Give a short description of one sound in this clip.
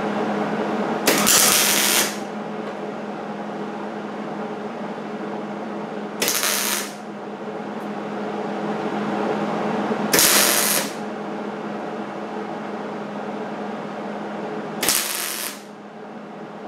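A welder crackles and buzzes in short bursts.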